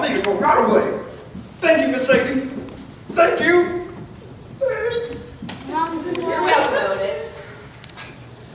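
A young man speaks loudly on stage in an echoing hall.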